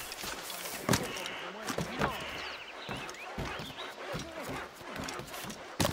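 Footsteps thud on a wooden roof.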